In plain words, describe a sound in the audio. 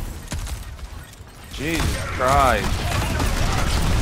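Rapid gunfire crackles loudly.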